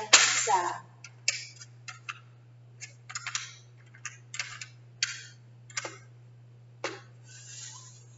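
Cards tap and click on a plastic rack.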